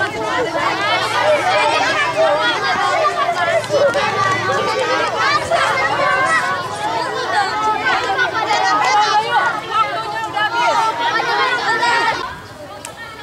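Many children chatter and shout nearby, outdoors.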